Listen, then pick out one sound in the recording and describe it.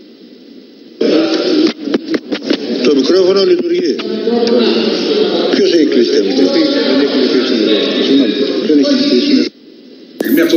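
A man speaks loudly through a microphone in a large hall.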